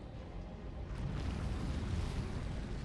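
A crackling energy blast bursts and roars.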